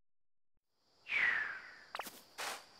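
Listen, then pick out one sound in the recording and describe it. A short springy jump sound effect plays, sliding down in pitch.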